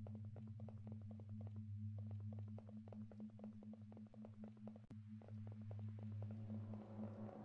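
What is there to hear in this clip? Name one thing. Footsteps patter quickly on pavement.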